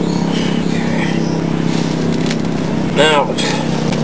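Dry plant fibres rustle and tear as they are pulled apart by hand.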